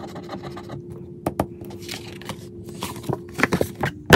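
A card rustles as it is picked up.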